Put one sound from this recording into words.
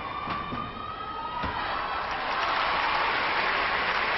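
A gymnast's feet thump down hard on a landing mat.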